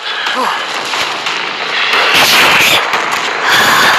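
A wooden pallet smashes and splinters.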